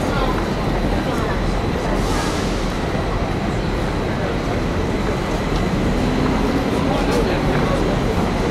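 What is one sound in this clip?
A busy city street hums with steady traffic and crowd noise outdoors.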